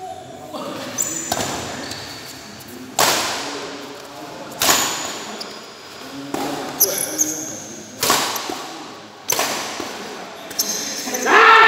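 Rackets strike a shuttlecock in quick sharp smacks, echoing in a large hall.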